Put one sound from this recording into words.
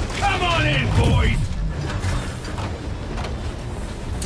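Heavy blows land with loud metallic thuds.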